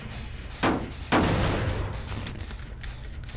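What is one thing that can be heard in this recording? A metal machine is kicked and clangs loudly.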